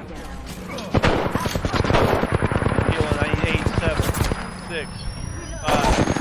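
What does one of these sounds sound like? A game's healing kit hums and crackles as it charges up.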